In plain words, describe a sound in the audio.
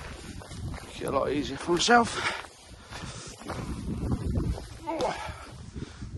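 Footsteps crunch on grass and loose stones.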